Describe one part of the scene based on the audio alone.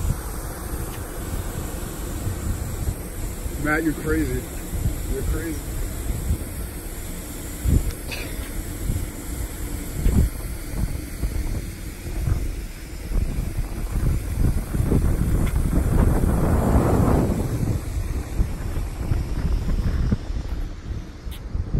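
Wind blows and rumbles steadily against the microphone outdoors.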